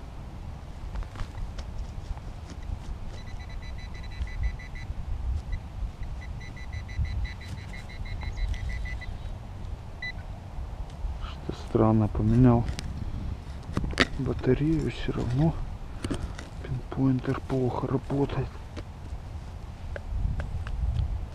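A small trowel scrapes and digs into dry soil.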